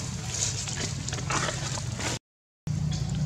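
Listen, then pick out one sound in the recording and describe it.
Dry leaves rustle as a monkey walks over them.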